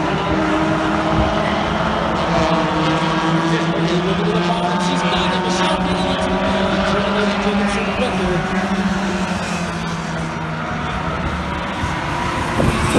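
Race car engines roar loudly and drone steadily.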